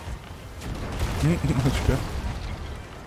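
A cannon fires with a heavy boom.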